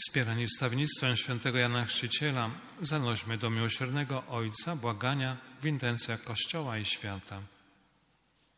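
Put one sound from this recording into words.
A man sings slowly through a loudspeaker in a large echoing hall.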